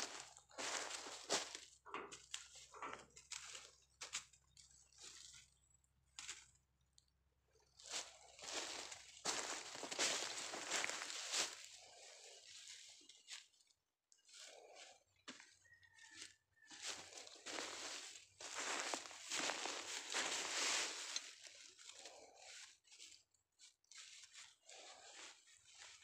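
Dry straw crackles and rustles underfoot.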